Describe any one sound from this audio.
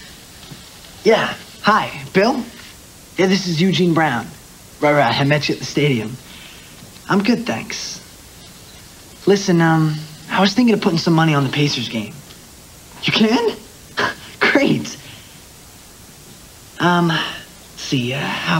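A young man talks with animation into a phone, close by.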